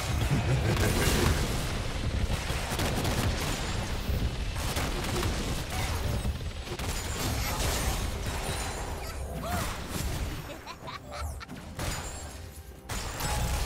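Video game spell effects burst and crackle during a fight.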